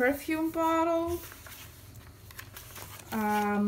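Paper rustles as a page of a book is turned by hand.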